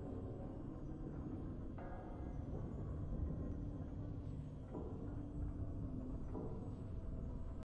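Triumphant game music plays with a deep booming swell.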